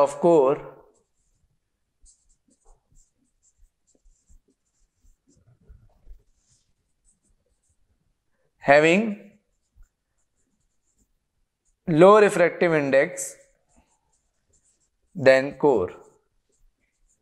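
A man speaks in short phrases, explaining calmly.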